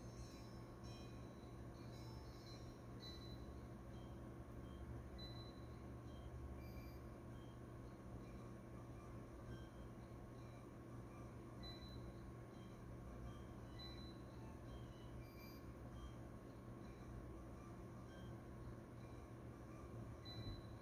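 Electronic game music and beeps play quietly through a small speaker.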